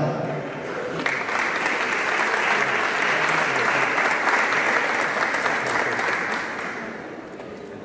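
People applaud.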